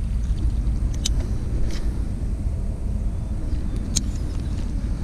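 A fishing reel clicks and whirs during a cast.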